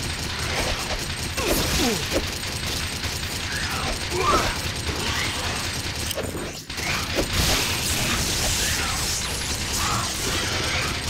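Creatures screech and growl in a video game.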